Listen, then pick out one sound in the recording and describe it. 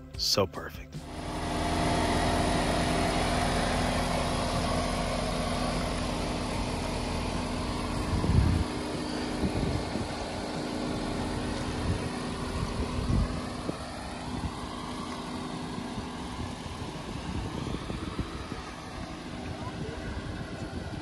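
A car engine idles steadily nearby.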